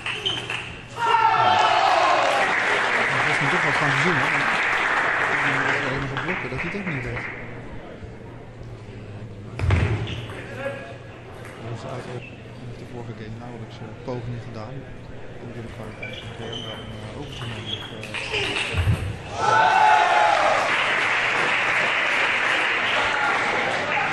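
A crowd applauds and cheers in an echoing hall.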